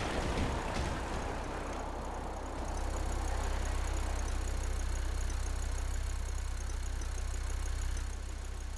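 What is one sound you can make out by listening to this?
A boat engine hums low and steady.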